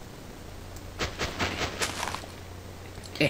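Soft crunching steps on grass and dirt come in a quick series.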